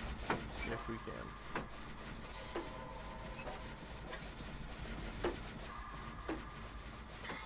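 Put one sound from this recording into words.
Metal parts clank and knock as an engine is worked on by hand.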